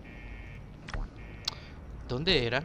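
A short menu click sounds.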